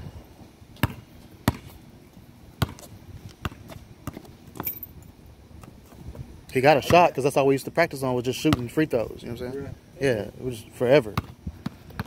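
A basketball bounces on pavement.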